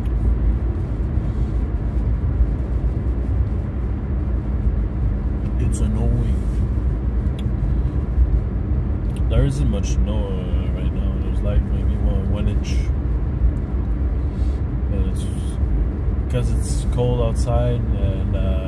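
Tyres rumble over a slushy road.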